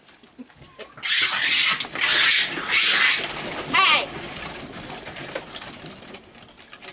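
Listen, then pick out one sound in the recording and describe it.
Raccoons squeal and chitter loudly.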